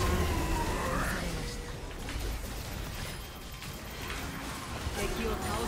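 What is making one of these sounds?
Game spell effects crackle and whoosh in quick bursts.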